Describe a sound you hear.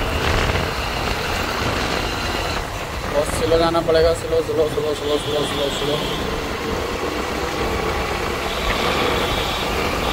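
Motorcycle engines hum on the road nearby.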